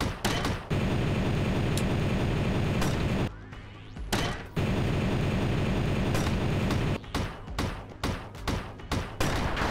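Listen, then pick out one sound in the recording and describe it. A gun fires rapid shots.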